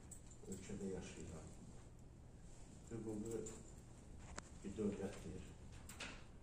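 An elderly man speaks calmly and formally in a room with a slight echo.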